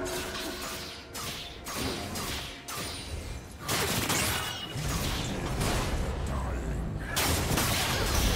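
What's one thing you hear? Magic spells whoosh and blast during a game battle.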